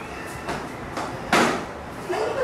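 Sneakers thump on a tiled floor as a boy dances.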